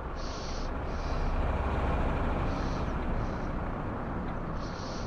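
A car swishes past close by.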